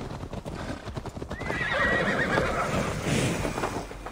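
Horse hooves clop on a dirt path.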